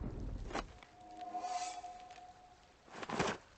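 A soft magical chime rings and slowly fades.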